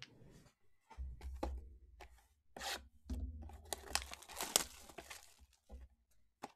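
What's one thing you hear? Plastic wrapping crinkles and tears.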